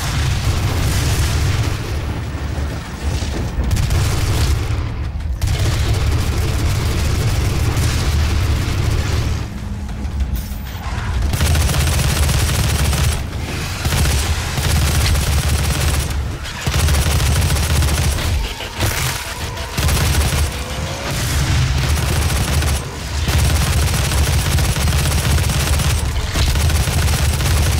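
A heavy gun fires rapid, booming shots.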